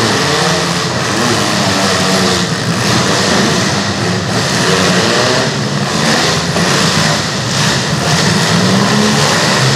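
Metal car bodies crash and bang into each other.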